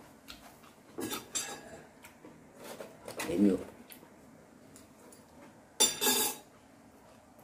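A middle-aged man crunches and chews fresh greens close by.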